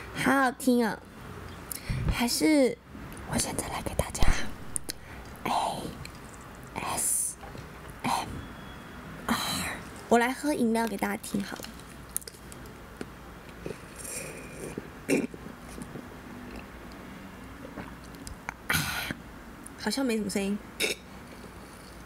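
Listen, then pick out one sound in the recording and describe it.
A young woman whispers softly, very close to a microphone.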